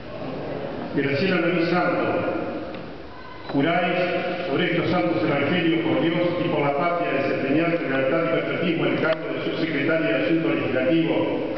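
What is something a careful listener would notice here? A woman speaks calmly into a microphone, heard over loudspeakers.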